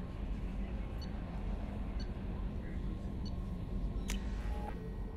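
Soft electronic clicks tick as menu choices change.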